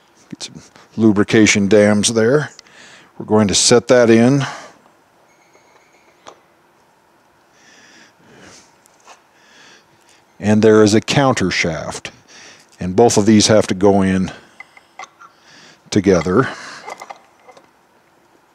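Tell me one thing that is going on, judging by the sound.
A middle-aged man speaks calmly and clearly into a headset microphone.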